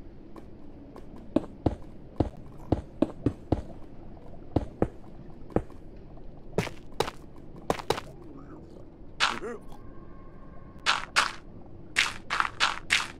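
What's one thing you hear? Stone blocks are placed with short, dull thuds.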